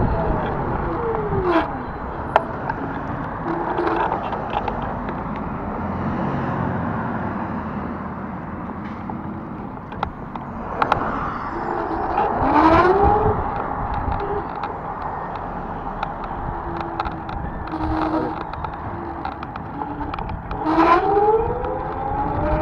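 Cars pass by in the opposite lanes.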